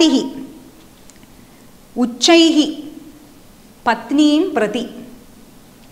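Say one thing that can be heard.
A woman speaks clearly into a close microphone, reciting in short phrases.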